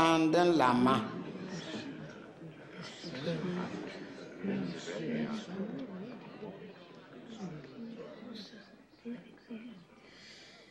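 A crowd of men and women murmur quietly.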